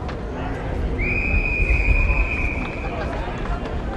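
A referee's whistle blows one long, shrill blast.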